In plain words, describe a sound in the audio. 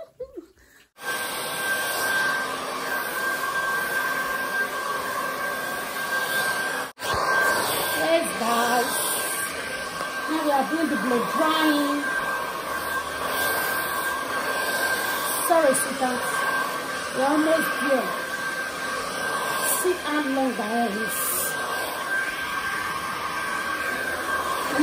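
A hair dryer blows with a steady whirring roar.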